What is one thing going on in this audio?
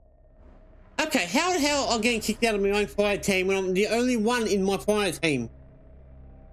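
A middle-aged man sings loudly and close into a microphone.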